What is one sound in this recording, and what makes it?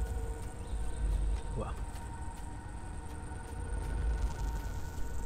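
A low wind rumbles steadily through a forest.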